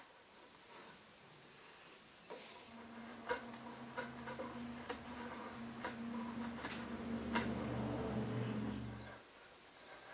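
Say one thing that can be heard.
A chisel shaves thin curls off wood with soft scraping clicks.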